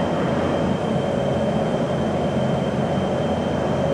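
An oxyacetylene cutting torch cuts through steel plate with a crackling rush of sparks.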